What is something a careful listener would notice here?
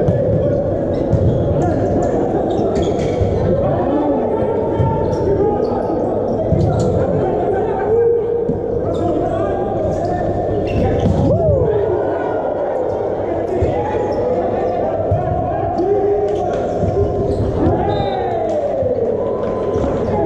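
A volleyball is struck hard in a large echoing hall.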